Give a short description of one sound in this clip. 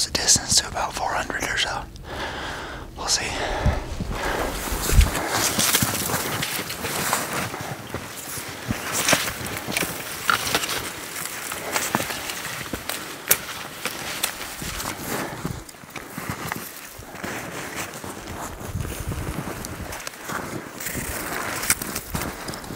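Boots crunch through snow with each step.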